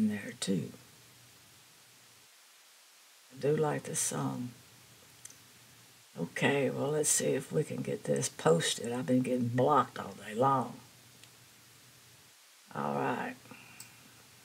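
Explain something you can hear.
An elderly woman talks calmly and closely into a microphone, with pauses.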